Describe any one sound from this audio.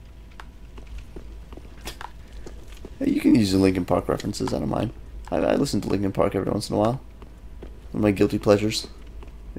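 Footsteps patter on stone.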